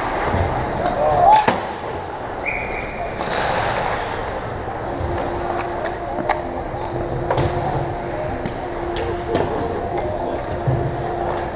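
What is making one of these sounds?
Hockey sticks clack sharply against a puck on the ice.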